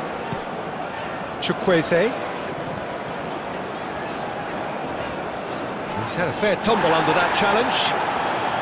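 A large stadium crowd murmurs steadily, swelling louder toward the end.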